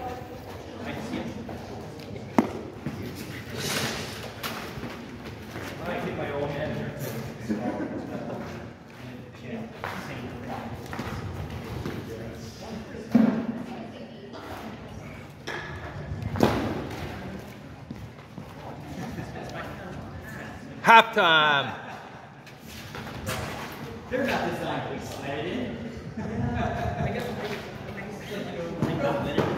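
Shoes scuff and tap on concrete.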